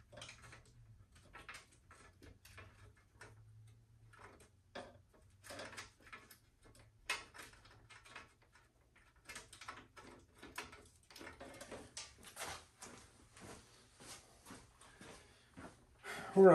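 Small metal parts click and knock as a man works.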